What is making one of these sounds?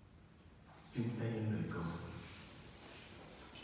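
A man speaks briefly through a loudspeaker.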